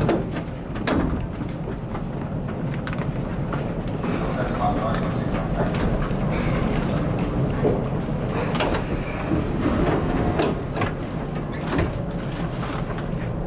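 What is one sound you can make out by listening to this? A train hums steadily while standing still.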